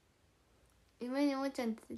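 A young woman speaks up suddenly and loudly, close by.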